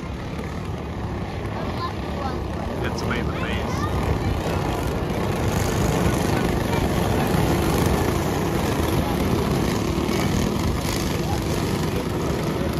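Go-kart engines buzz and whine as the karts race past, growing louder.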